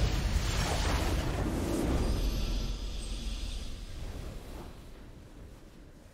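A game's triumphant victory fanfare swells and then slowly fades.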